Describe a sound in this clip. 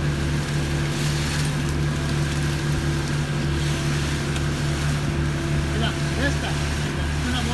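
Wet concrete splatters and slops from a hose.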